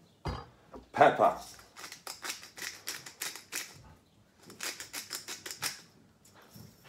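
A hand grinder crunches in quick, repeated twists.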